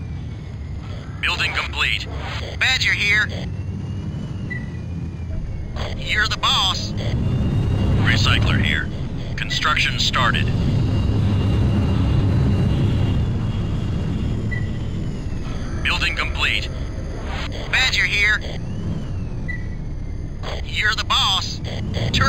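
A vehicle engine hums low and steadily, swelling louder at times.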